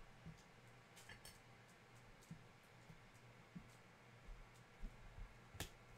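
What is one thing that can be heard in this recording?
Card sleeves click and tap against each other.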